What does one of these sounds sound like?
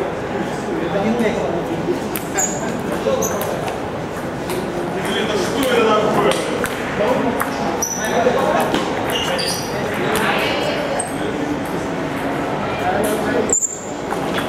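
A ping pong ball clicks against paddles and the table.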